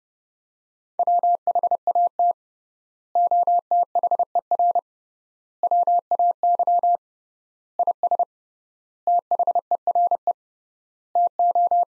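A telegraph key taps out Morse code as steady, high beeps in quick bursts.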